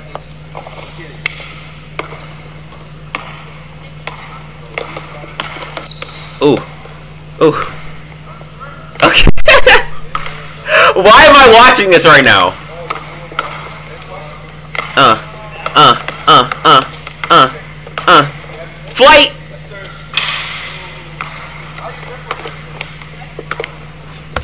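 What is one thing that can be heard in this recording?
A basketball bounces on a hard court floor.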